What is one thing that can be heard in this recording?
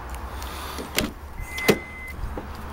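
A car door unlatches with a click and swings open.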